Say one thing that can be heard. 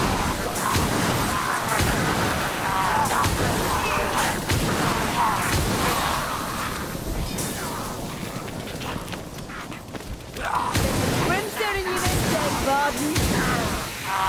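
Guns fire in rapid bursts of loud blasts.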